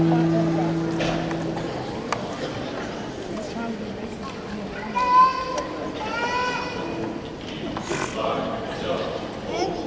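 A choir sings in a large echoing hall.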